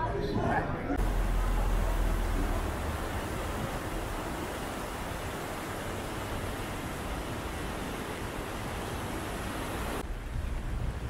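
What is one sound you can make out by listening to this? A car drives slowly over wet cobblestones.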